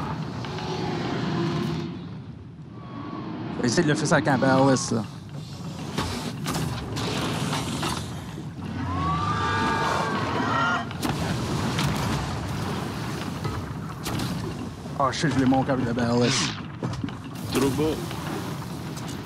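Waves roll and splash on the open sea.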